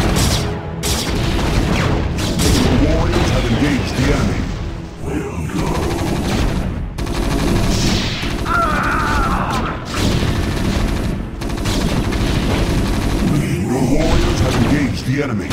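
Explosions boom in a game battle.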